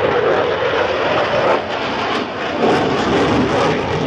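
A jet engine's afterburner rumbles and crackles.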